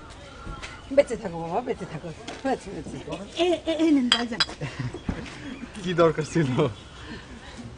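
A middle-aged woman speaks warmly up close.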